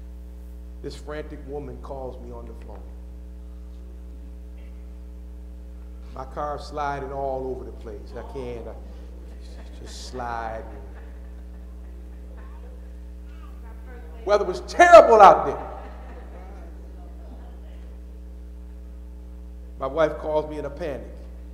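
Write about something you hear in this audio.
A man preaches through a microphone with animation, in pauses, in a large echoing hall.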